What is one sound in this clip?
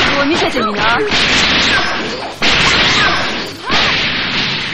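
Punches and energy blasts crash and explode in a fighting game.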